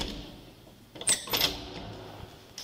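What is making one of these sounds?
A heavy door bangs as it swings open.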